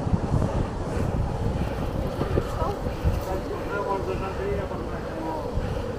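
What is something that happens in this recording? An excavator engine hums nearby.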